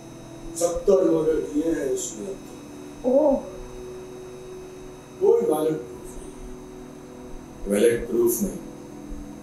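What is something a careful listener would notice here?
A man speaks calmly in short bursts.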